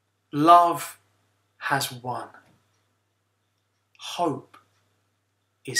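A young man speaks cheerfully and close to a microphone, in short bursts.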